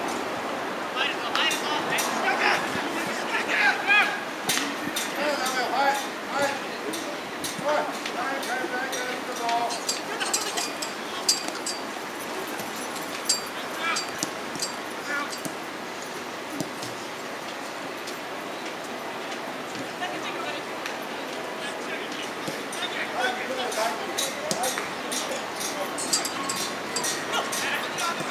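Young men shout and call out to each other outdoors across an open field.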